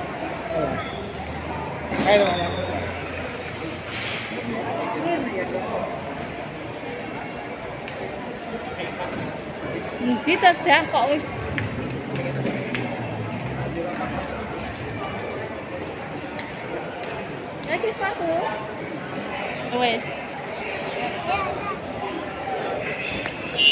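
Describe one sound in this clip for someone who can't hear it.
A crowd of adults and children chatters in a large echoing hall.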